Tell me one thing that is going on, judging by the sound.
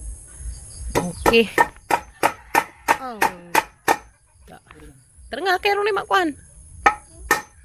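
A hammer knocks against wood several times.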